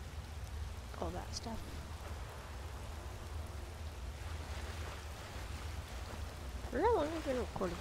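Water rushes and splashes down a small waterfall.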